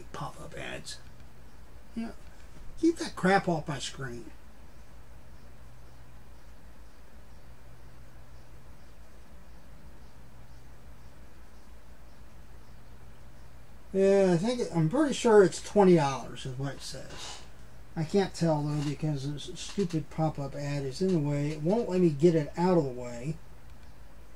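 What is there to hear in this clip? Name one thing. A middle-aged man talks calmly, close to a microphone.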